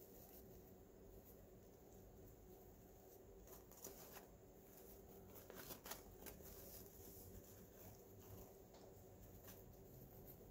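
Ribbon rustles and crinkles as hands fluff a bow.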